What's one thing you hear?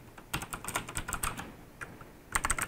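Fingers type softly on a keyboard, its keys clicking quietly.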